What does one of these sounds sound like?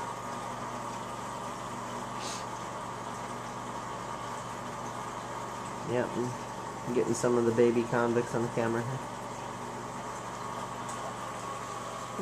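Air bubbles stream and fizz steadily through water.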